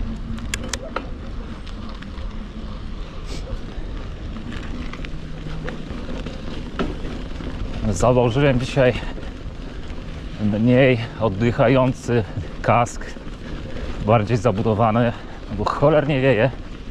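Bicycle tyres crunch and rumble over a gravel track.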